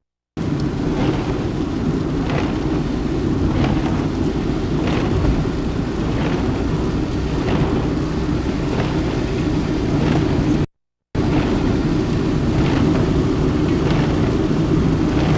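Windscreen wipers swish back and forth at a steady pace.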